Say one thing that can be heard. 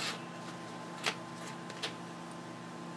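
Small hard parts click together as they are handled.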